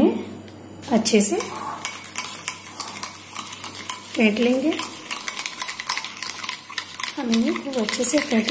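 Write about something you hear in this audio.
A spoon scrapes and clinks against a glass bowl while stirring.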